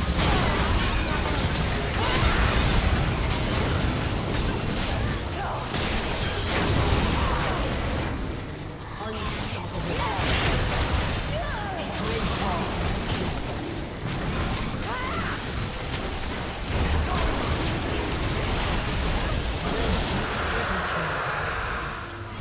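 Game spell effects and combat sounds crash and whoosh in rapid bursts.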